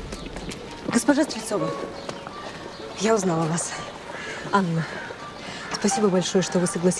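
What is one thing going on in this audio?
A young woman greets another warmly outdoors.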